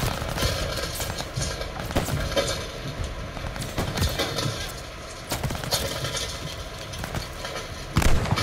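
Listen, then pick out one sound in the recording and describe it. Gunfire cracks repeatedly all around.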